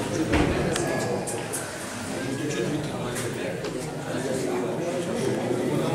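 An elderly man talks calmly nearby.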